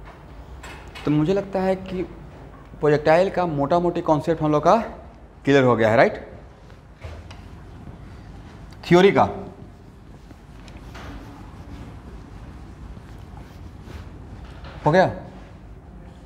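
A man speaks loudly and clearly.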